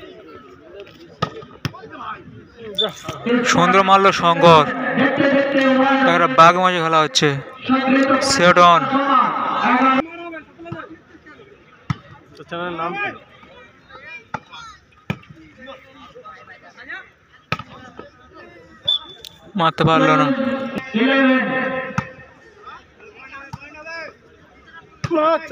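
A volleyball is struck with sharp thumps.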